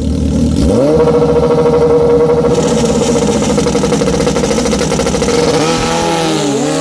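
A motorcycle engine holds a loud, steady high rev.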